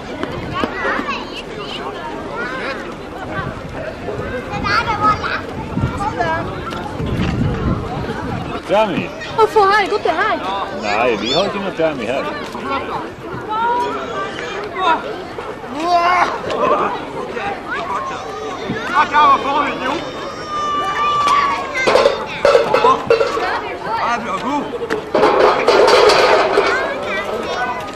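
A crowd of adults and children chatter outdoors.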